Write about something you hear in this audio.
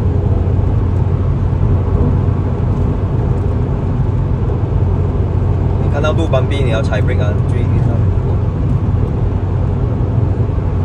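Road noise rumbles low and steady inside a moving car.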